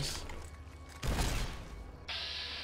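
A heavy gun fires with a loud boom.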